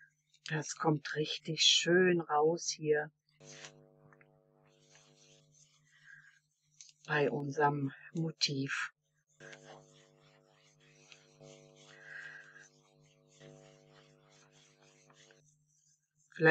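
A foam sponge dabs softly on paper.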